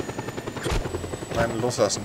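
A helicopter's rotor chops loudly overhead.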